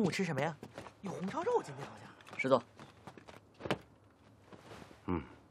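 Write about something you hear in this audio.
A man answers calmly, close by.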